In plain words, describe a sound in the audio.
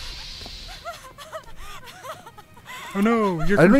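A young woman sobs and gasps.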